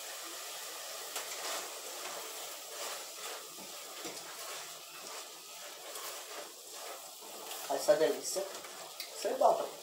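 A wooden spoon scrapes and stirs food in a metal pot.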